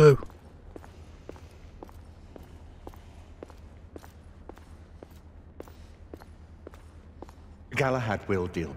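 Footsteps knock steadily on a hard floor.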